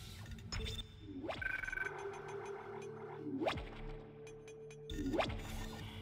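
Electronic interface tones beep and hum.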